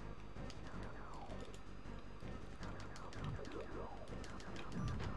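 Sharp electronic blips and bursts pop now and then.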